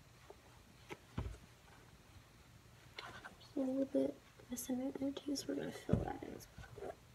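Light taps and knocks come from handling a canvas shoe.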